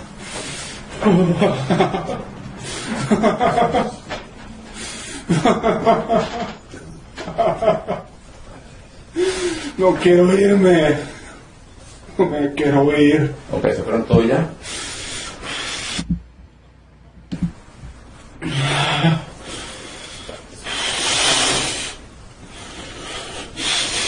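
A man preaches loudly and with passion, heard through a microphone.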